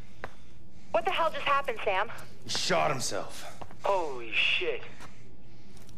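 A man speaks in a tense, low voice.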